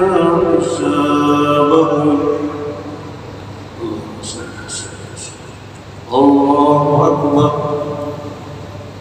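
A man chants a prayer aloud through a loudspeaker in a large echoing hall.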